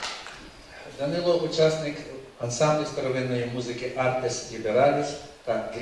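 A middle-aged man speaks into a microphone over loudspeakers in a large hall.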